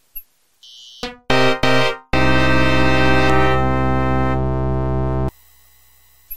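A loud, dramatic electronic chord blares from an old computer game, then cuts off.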